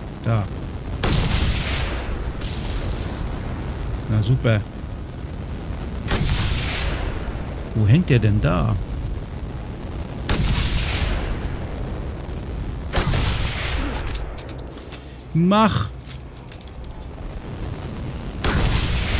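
Rifle shots crack loudly, each followed by a rolling echo.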